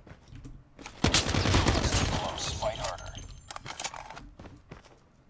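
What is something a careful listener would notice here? Gunfire rattles loudly in a video game.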